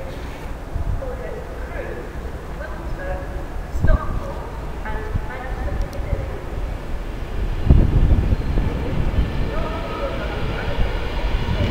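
Train wheels squeal on curved rails.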